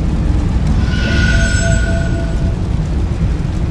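A bright shimmering chime rings out and fades.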